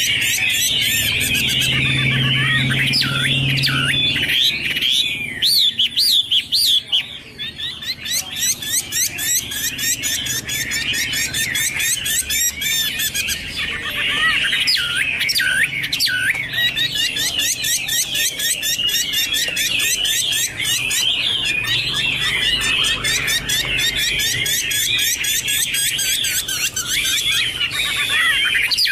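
A songbird sings loud, rapid, varied whistling phrases close by.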